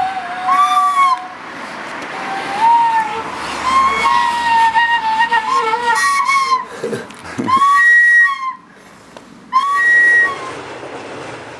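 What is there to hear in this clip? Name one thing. A small child blows short, shrill notes on a toy flute.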